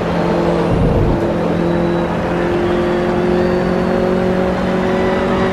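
A racing car engine roars at high revs and climbs steadily in pitch.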